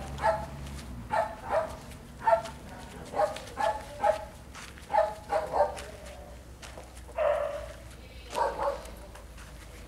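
A young woman talks to a dog nearby in a lively, coaxing voice.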